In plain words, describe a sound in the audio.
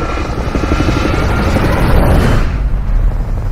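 Helicopter rotors thump loudly overhead.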